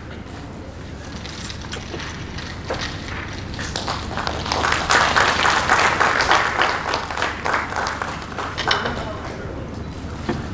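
A crowd claps and cheers in a large hall.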